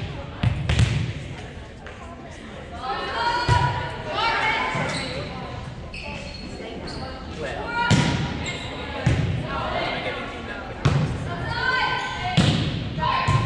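A volleyball is struck with sharp thumps that echo in a large hall.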